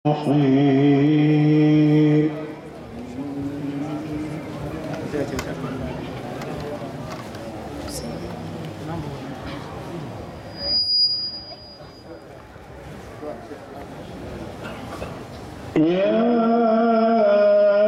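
A man chants in a long, drawn-out voice through a microphone and loudspeakers.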